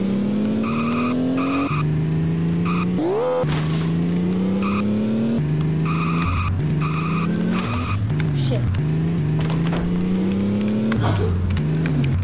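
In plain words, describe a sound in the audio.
A video game car engine revs up and shifts gears.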